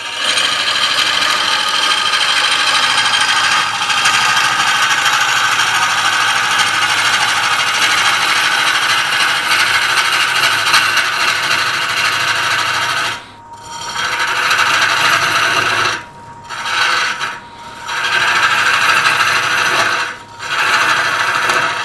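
A lathe tool scrapes against spinning wood with a loud hiss, stopping briefly now and then.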